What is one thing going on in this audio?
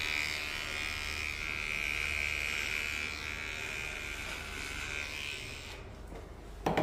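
An electric trimmer buzzes close by.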